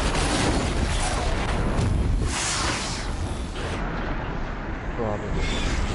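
A bowstring twangs as arrows fly.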